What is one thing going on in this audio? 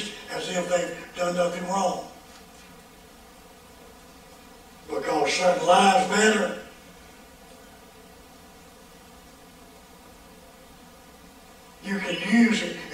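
An elderly man preaches through a microphone, speaking forcefully in short bursts with long pauses.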